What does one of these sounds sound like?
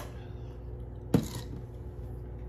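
A glass is set down on a hard counter with a knock.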